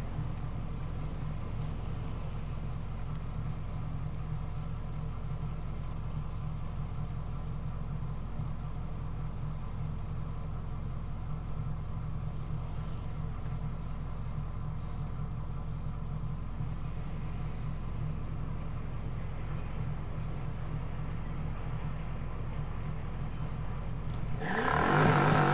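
An SUV engine hums at a low, steady idle.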